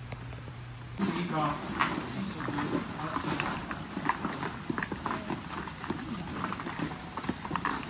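People murmur and walk on gravel nearby.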